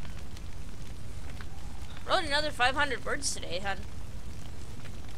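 A fire crackles nearby.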